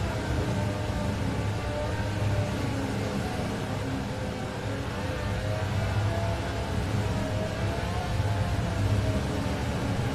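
A sports car engine roars steadily at high speed.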